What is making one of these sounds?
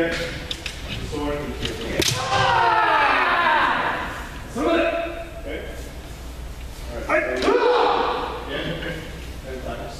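Men shout long, loud battle cries that echo through a large hall.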